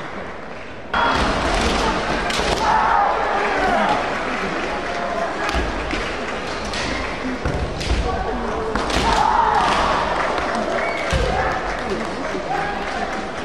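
Kendo fencers shout loud, sharp cries in a large echoing hall.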